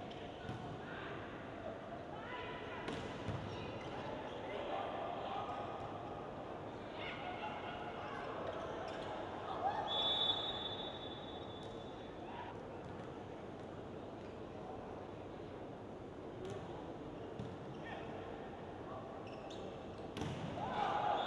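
A volleyball is struck hard, the thuds echoing in a large hall.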